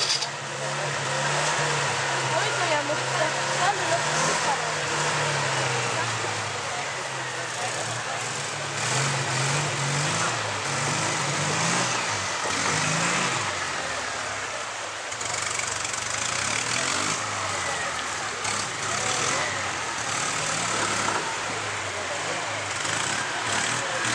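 A shallow stream rushes over rocks.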